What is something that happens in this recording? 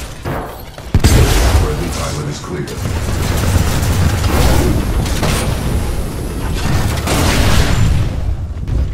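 Loud explosions roar and rumble.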